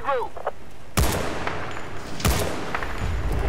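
A rifle fires loud, sharp shots that echo away.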